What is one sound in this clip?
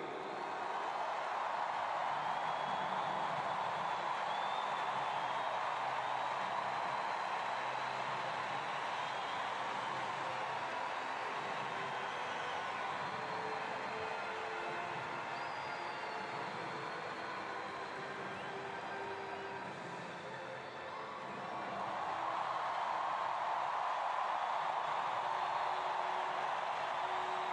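A large stadium crowd cheers and roars, swelling loudly.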